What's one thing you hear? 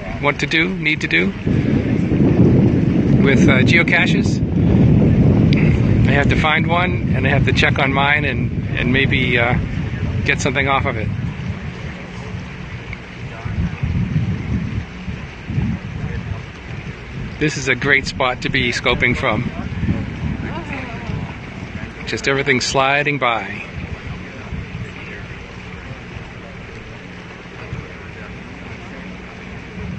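A boat motor rumbles low and steady while moving through calm water.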